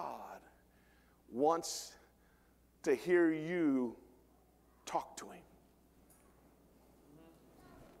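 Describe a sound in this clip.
A middle-aged man preaches with animation through a microphone in a large echoing hall, in short bursts with pauses.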